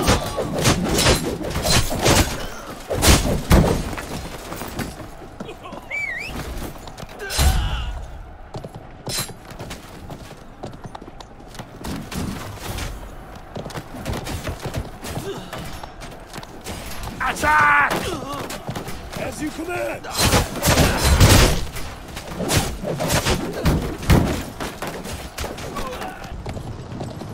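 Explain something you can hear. Swords clash and strike in a fierce melee.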